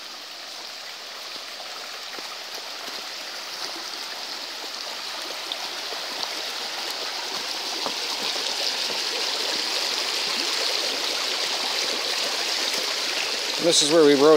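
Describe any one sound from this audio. A shallow creek trickles over stones, growing louder.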